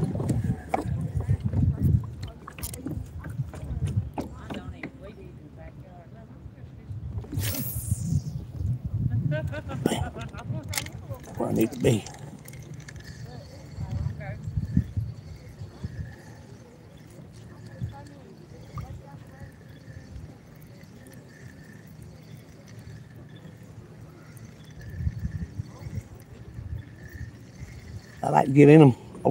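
Water laps gently against the hull of a small boat.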